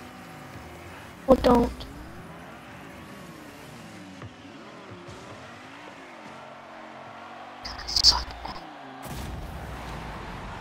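A car engine hums and whines as it speeds along.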